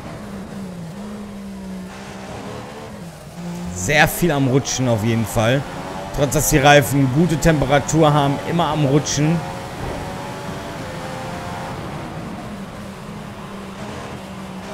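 A racing car engine whines at high revs, shifting up and down through the gears.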